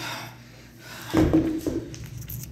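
Hex dumbbells thud onto a rubber floor.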